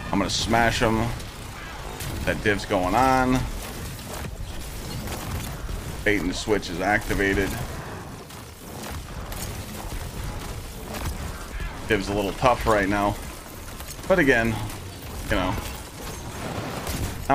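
Rapid gunfire and blasts sound throughout.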